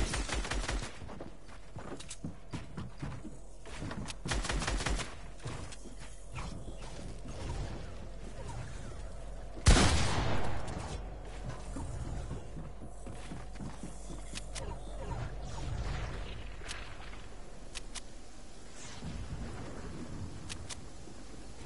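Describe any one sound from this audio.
Building pieces clack into place quickly, one after another.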